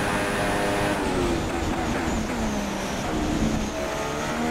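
A Formula One car's engine drops in pitch as it downshifts under braking.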